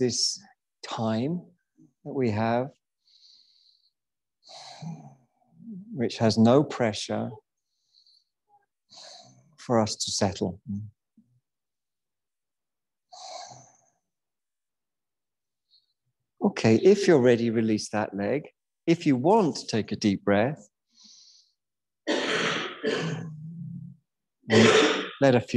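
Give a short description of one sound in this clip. A man speaks calmly and slowly through a microphone, with pauses.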